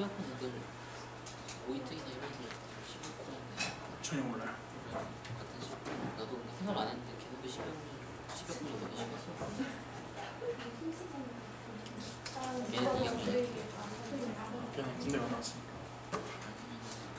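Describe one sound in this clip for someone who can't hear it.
A young man talks close by.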